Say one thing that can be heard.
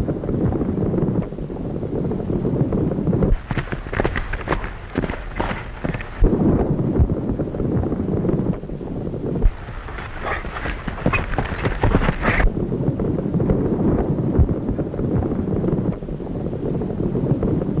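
Cattle hooves thunder in a stampede.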